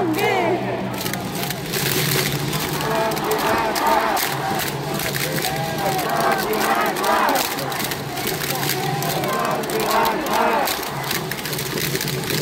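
Plastic hand clappers rattle and clap in rhythm.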